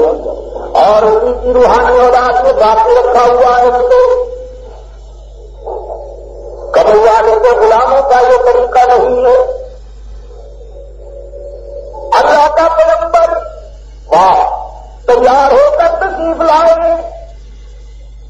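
A middle-aged man speaks calmly and slowly, close to a microphone, with pauses between phrases.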